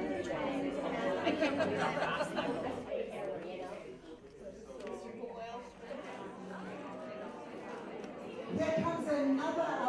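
A crowd of adults chatters close by.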